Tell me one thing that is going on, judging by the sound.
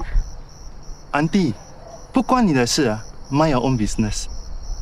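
A young man speaks mockingly nearby.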